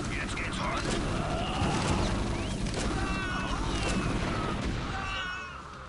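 Gunfire and small explosions crackle in a battle.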